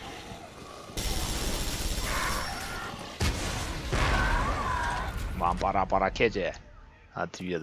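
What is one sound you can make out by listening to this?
A heavy gun fires loudly in bursts.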